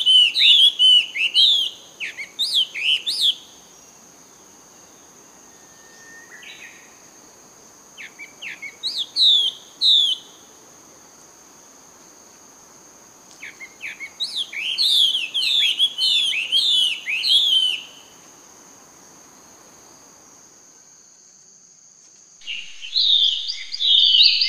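A baby monkey squeals in high, shrill bursts close by.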